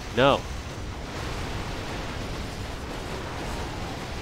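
Crackling magic bolts strike with a sizzling roar.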